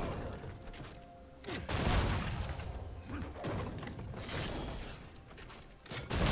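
Game spell effects and clashes sound during a fight.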